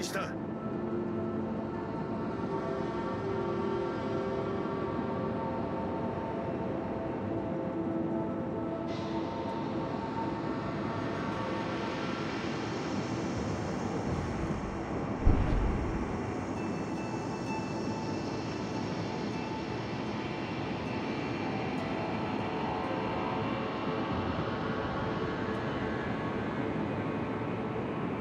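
A large ship's engine rumbles steadily.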